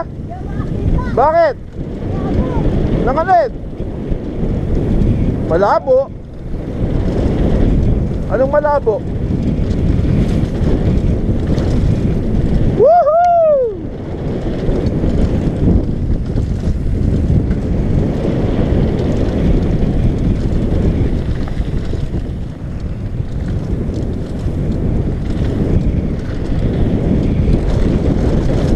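Wind roars steadily past a rider speeding downhill.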